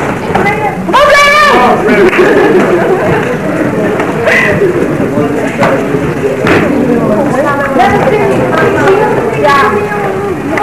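Bare feet slap and shuffle on a mat.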